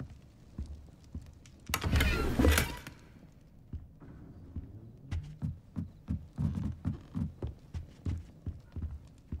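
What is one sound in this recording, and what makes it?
Footsteps thud on wooden floorboards and stairs.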